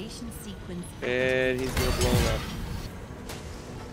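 Game sound effects clash and ring out.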